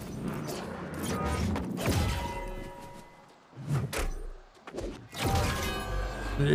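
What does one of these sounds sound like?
Sword blows strike a ghostly foe with sharp clashes.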